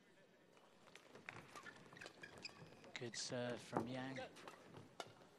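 Rackets smack a shuttlecock back and forth in a fast rally.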